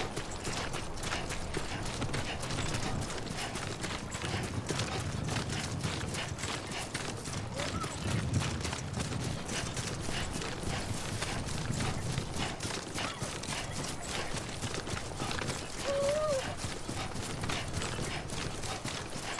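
Footsteps thud quickly on grass as a man runs.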